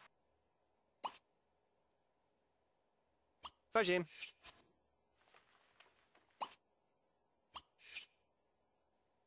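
Short electronic interface chimes sound now and then.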